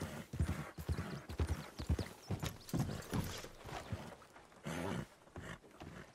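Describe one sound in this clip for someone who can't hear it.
A horse's hooves clop steadily on a dirt path and wooden boards.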